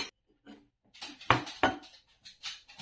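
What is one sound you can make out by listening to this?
A ceramic saucer knocks against a wooden board.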